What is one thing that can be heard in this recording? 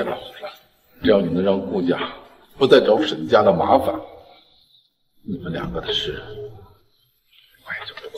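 An older man speaks sternly and firmly, close by.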